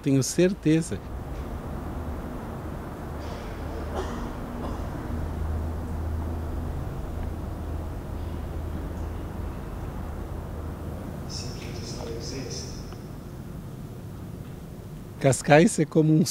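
A man's voice speaks softly over loudspeakers in a large hall.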